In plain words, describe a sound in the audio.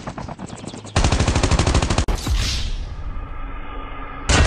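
A rifle fires a rapid burst of shots.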